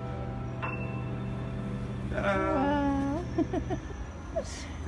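A piano plays a chord that rings on.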